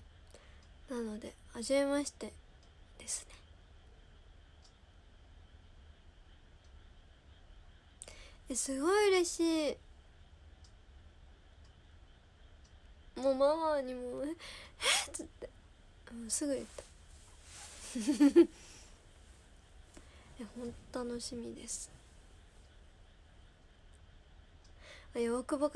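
A young woman talks softly and close to a microphone, in short bursts with pauses.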